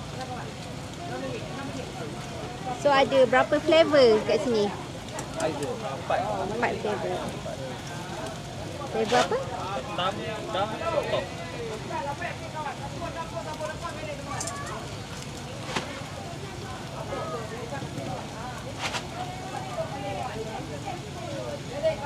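Batter sizzles on a hot griddle.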